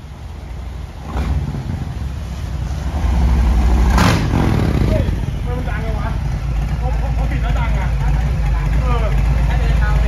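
A motorcycle engine rumbles steadily at idle.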